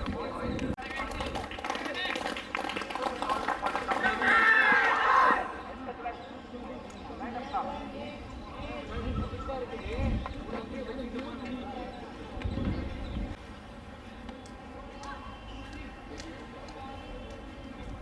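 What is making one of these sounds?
A crowd chatters in the distance outdoors.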